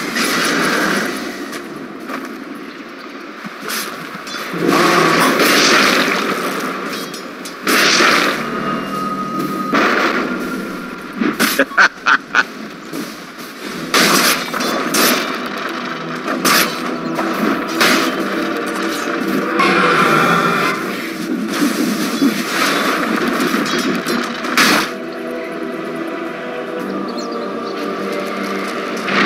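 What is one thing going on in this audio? Game spell effects and hits crackle and burst in quick succession.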